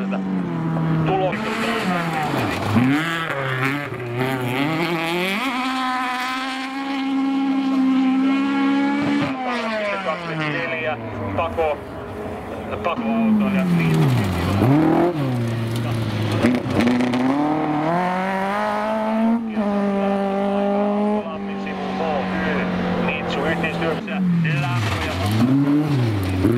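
Rally car engines roar and rev hard, rising and falling in pitch as they shift gears.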